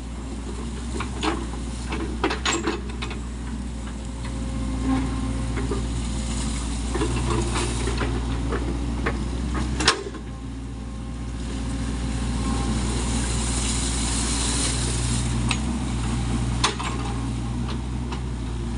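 An excavator bucket digs into wet mud and clanks.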